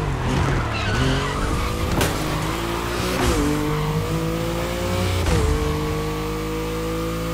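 A sports car engine roars and revs higher as it accelerates.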